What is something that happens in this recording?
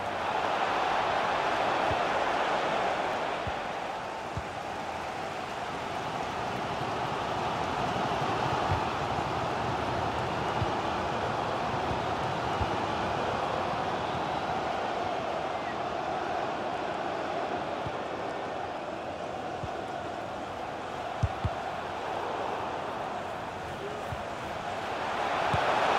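A large crowd roars steadily in a big stadium.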